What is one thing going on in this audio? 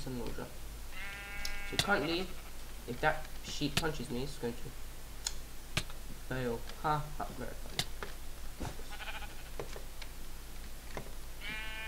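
A sheep bleats.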